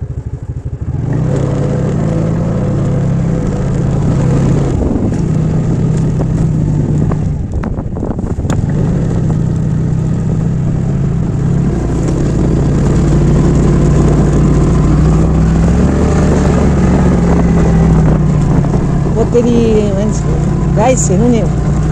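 A motorcycle engine starts with a low idle, then hums steadily as the bike rides along.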